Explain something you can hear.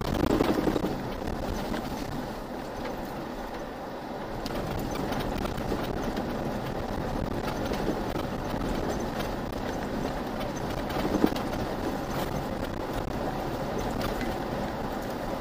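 A vehicle engine drones steadily while driving.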